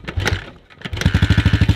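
A motorcycle engine starts and idles with a fast, loud chugging.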